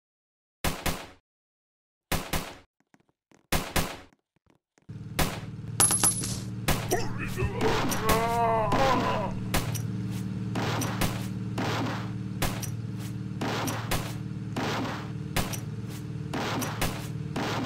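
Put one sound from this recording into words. Guns fire in short, repeated bursts.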